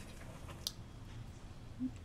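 A young woman gasps softly in surprise close by.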